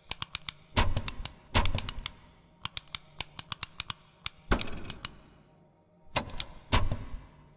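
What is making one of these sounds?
Short game menu clicks and beeps sound quickly as options are selected.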